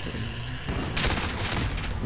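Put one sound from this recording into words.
A sniper rifle fires a single heavy shot.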